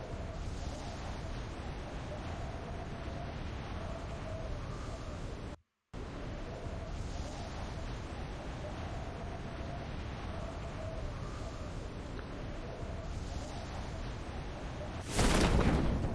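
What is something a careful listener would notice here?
Wind rushes steadily past a falling skydiver.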